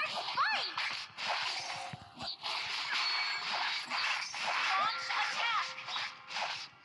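Magic blasts and hits from a fantasy battle game whoosh and crackle in quick bursts.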